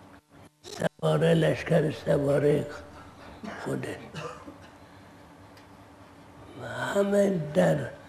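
An elderly man speaks slowly and calmly into a close microphone.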